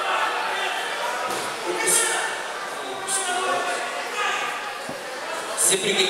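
Wrestlers thud and scuffle on a mat.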